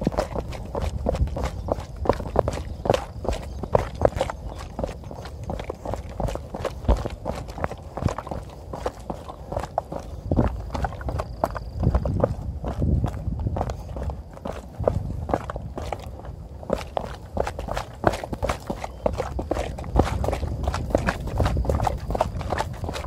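Running footsteps thud on a dirt path.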